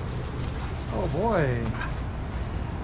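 A dog yelps in a short, rising and falling whine.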